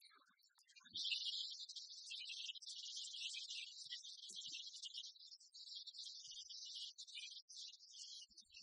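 A shuttlecock is struck sharply with a racket, echoing in a large hall.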